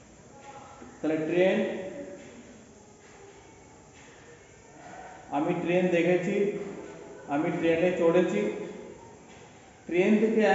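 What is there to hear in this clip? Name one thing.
A man reads aloud nearby in loud, drawn-out bursts with pauses between them.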